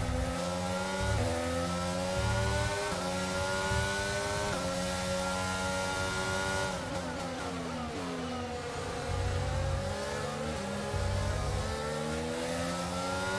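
A racing car engine whines at high revs, rising through each gear and dropping as it slows for a corner.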